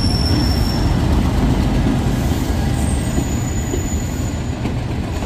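A train's wheels clatter over the rails.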